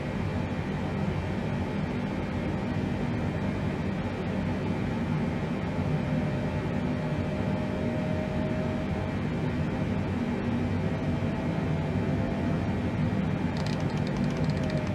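Jet engines drone steadily and low.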